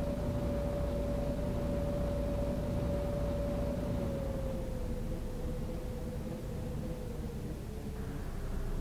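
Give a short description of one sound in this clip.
A bus engine hums steadily, its whine dropping slightly in pitch as the bus eases off.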